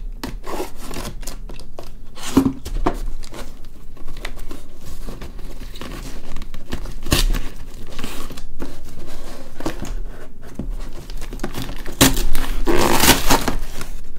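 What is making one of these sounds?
Hands rustle and scrape against a cardboard box.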